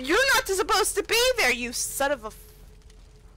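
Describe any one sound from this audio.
A young woman speaks excitedly into a microphone, close up.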